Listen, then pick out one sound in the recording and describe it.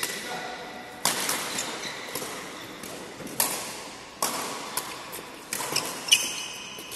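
Rackets strike a shuttlecock in quick back-and-forth hits.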